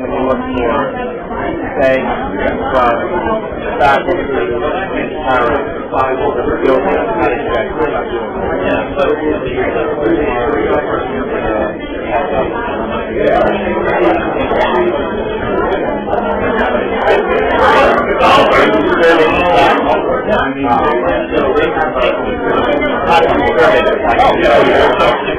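A crowd of men and women chatter over one another.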